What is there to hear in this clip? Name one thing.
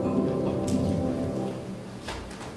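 Elderly women finish singing in an echoing room.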